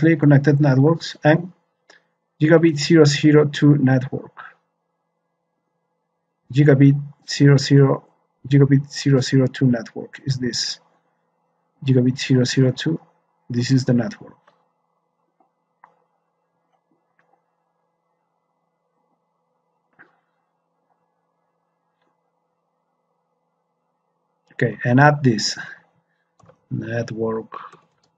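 A man speaks calmly into a microphone, pausing now and then.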